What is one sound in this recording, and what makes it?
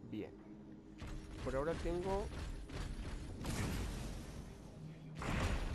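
Magical energy whooshes and crackles loudly.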